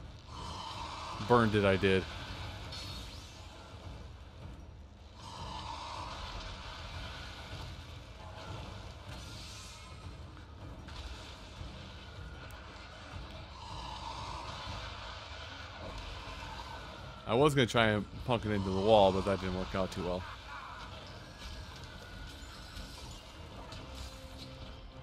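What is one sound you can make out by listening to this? Blades clash and slash in a fast fight.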